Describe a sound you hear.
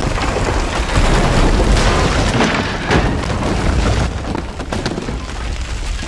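Wooden boards and debris crash down and clatter onto a floor.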